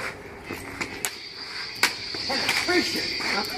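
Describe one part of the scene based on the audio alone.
Plastic toy swords clack together.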